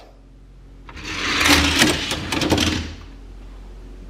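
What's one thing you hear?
Small toy cars roll fast down a plastic track with a rushing rattle.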